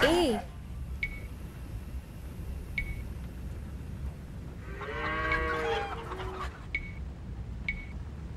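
Short game interface clicks sound as buttons are pressed.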